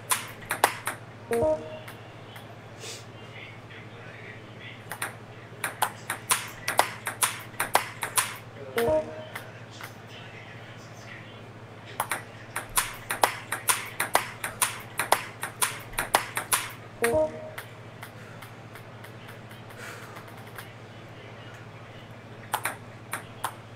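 A table tennis ball clicks quickly against paddles and a table.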